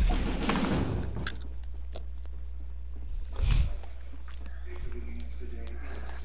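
Footsteps patter quickly across a roof.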